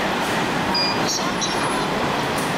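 A ticket gate beeps sharply as a card is tapped.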